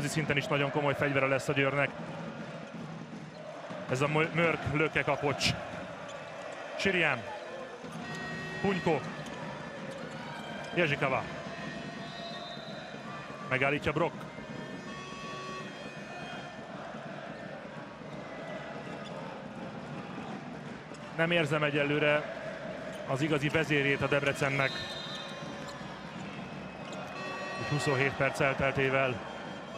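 A large crowd chants and cheers in an echoing hall.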